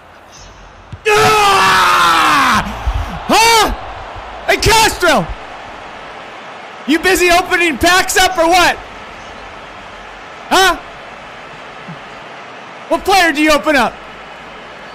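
A man shouts and sings loudly and with animation close to a microphone, in short bursts.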